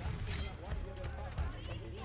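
Footsteps run over grass and gravel.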